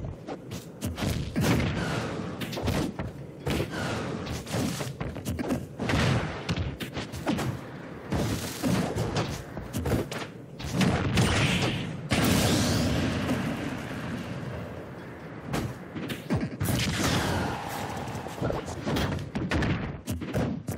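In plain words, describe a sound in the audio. Fighting game hits and whooshes sound out in quick bursts.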